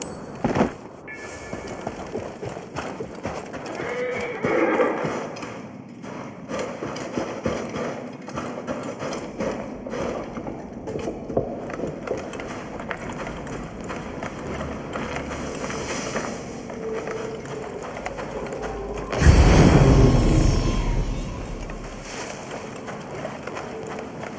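Footsteps crunch quickly over sand and gravel.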